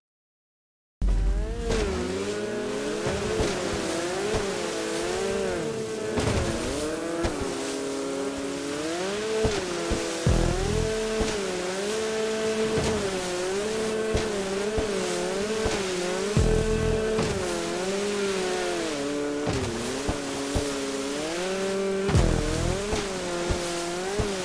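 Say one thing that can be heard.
A jet ski engine whines and revs up and down.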